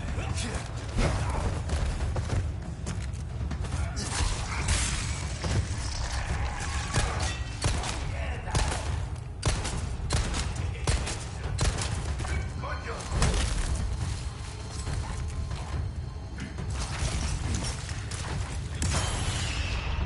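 Gunshots ring out sharply, one after another.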